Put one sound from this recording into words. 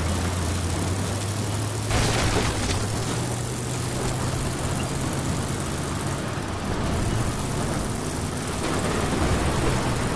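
An engine hums steadily as a van drives over rough ground.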